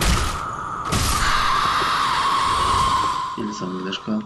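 An icy blast roars and hisses.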